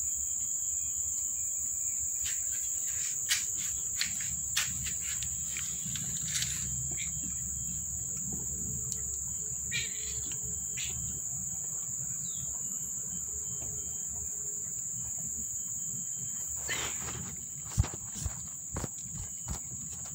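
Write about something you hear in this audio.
Small kittens suckle and wriggle against a mother cat.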